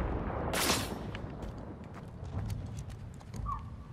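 A weapon clicks as it is switched.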